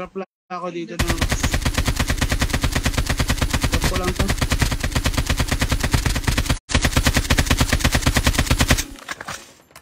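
Rapid automatic gunfire rattles in a video game.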